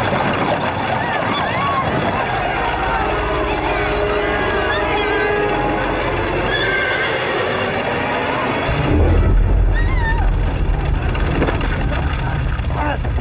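A crowd of people shouts in alarm.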